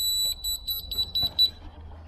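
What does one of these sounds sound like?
A screwdriver scrapes as it turns a screw.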